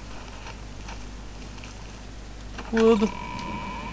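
A heavy door creaks open.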